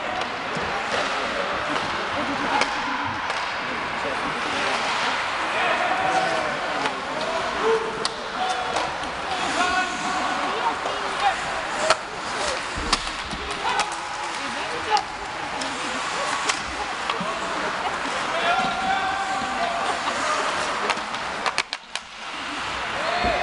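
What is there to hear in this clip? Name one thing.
A crowd of spectators cheers and shouts in a large echoing arena.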